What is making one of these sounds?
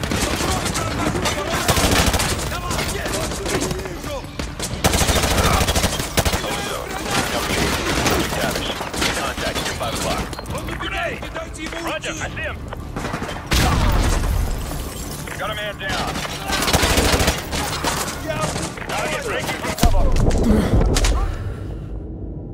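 Rifles fire in rapid bursts, echoing in a large hall.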